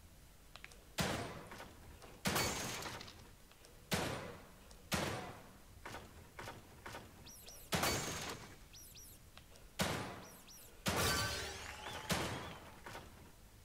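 Gunshots ring out one at a time, each followed by a short echo.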